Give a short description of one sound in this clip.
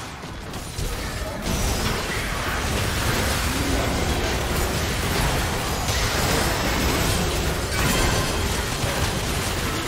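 Loud impacts and explosions burst in quick succession.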